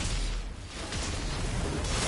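An electric blast crackles and sizzles.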